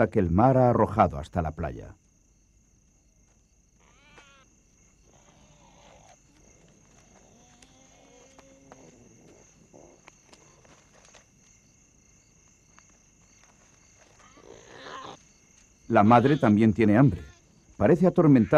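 A hyena chews and tears at a bird carcass.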